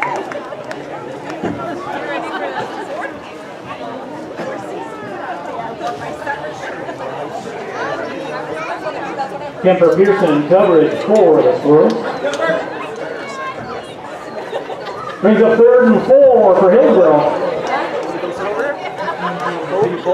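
Players shout and call out to each other on an open field.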